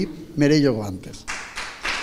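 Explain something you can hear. A man speaks briefly through a microphone in an echoing hall.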